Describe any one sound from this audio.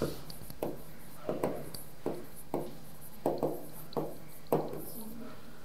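A man taps a pen against a touch board in quick, light knocks.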